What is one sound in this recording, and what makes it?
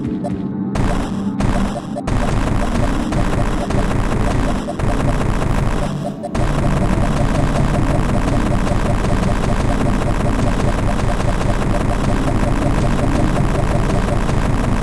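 Upbeat electronic video game music plays throughout.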